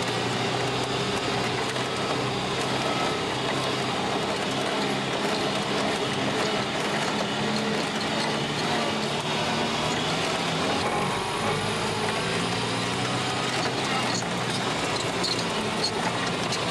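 A vehicle engine hums steadily while driving over rough ground.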